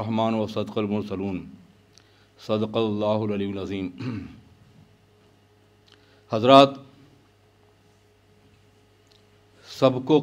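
An elderly man recites slowly and solemnly into a microphone, with pauses between phrases.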